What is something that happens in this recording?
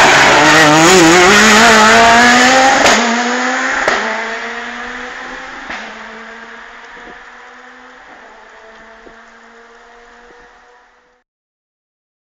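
A rally car engine roars and revs hard as the car speeds past close by, then fades into the distance.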